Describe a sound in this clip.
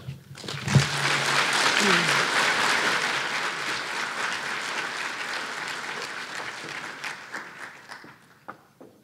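An audience applauds loudly in a large hall, then the applause fades.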